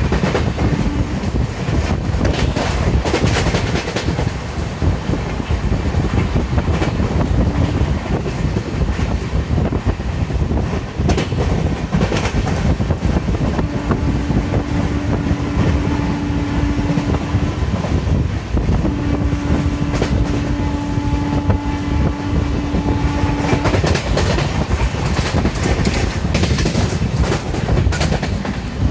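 Wind rushes loudly past an open train window.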